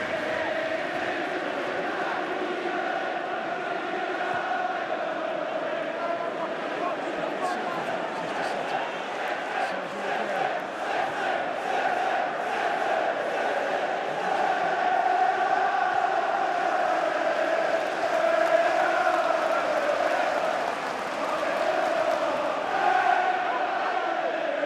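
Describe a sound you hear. A large stadium crowd chants and sings loudly throughout.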